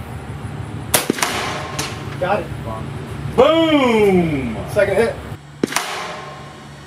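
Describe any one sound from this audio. A rifle fires loud sharp shots outdoors.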